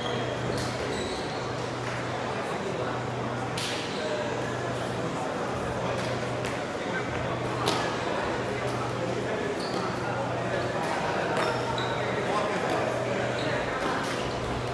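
A crowd of spectators murmurs and chatters in the background.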